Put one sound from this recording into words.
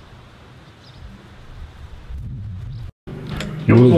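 A man pushes a sliding metal gate, which rattles.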